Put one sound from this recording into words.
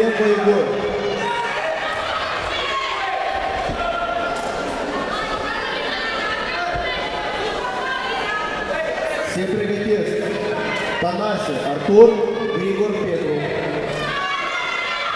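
A crowd of spectators chatters and shouts in a large echoing hall.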